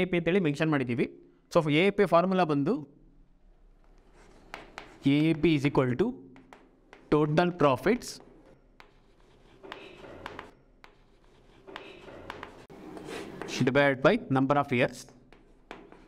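A young man speaks calmly, in short bursts with pauses, close to a microphone.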